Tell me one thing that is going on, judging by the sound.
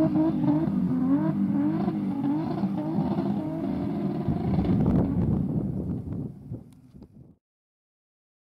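A rally car engine revs hard and roars as the car drifts.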